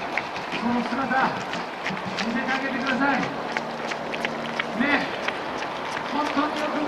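Many runners' footsteps patter on the road.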